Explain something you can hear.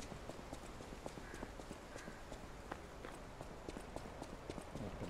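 Footsteps crunch quickly over dry leaves.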